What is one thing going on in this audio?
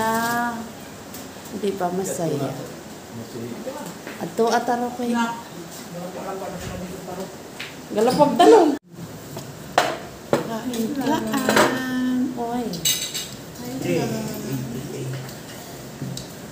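Women talk and chat casually close by.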